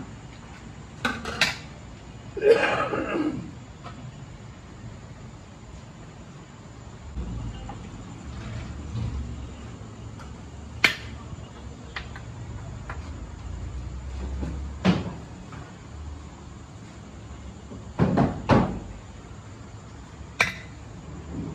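Metal ladles clink and scrape against a steel pot.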